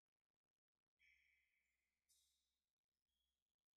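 A mallet strikes a frame drum.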